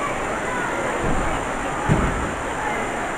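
A wrestler's body slams heavily onto the ring mat.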